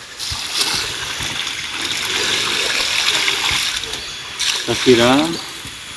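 Water pours from a plastic bucket onto soil.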